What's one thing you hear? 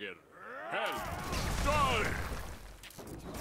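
A magic spell bursts with a crackling boom.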